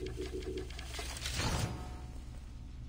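A game menu gives a short whoosh of confirmation.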